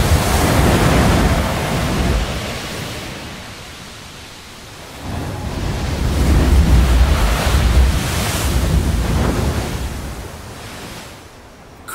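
A blowhole spout hisses and sprays water into the air.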